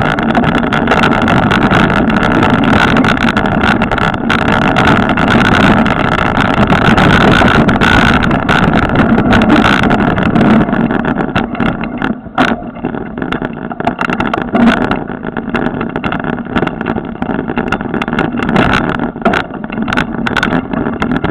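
Tyres rattle and bump over a rough dirt trail.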